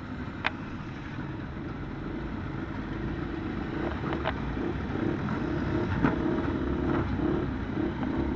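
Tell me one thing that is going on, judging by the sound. Race car engines roar past.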